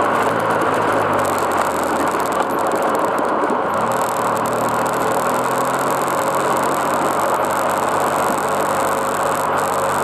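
A quad bike engine runs close by, rising in pitch now and then.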